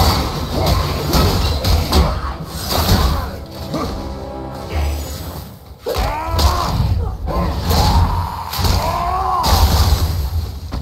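A creature snarls and roars.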